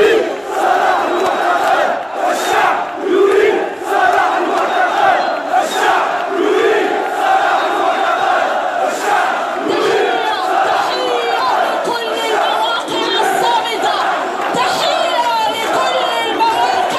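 A large crowd chants in unison outdoors.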